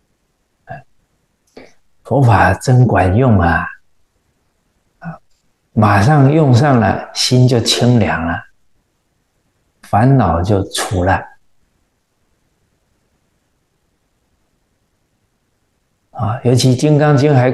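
A middle-aged man speaks calmly and warmly into a close microphone, with pauses between phrases.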